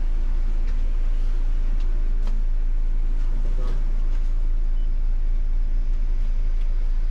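A bus engine rumbles low and steady from inside the cab.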